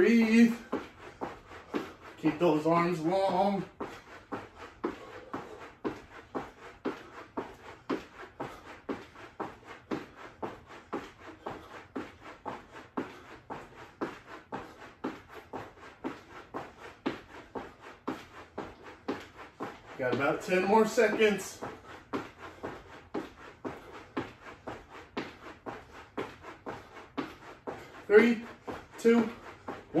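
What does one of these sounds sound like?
A jump rope slaps the floor in a quick, steady rhythm.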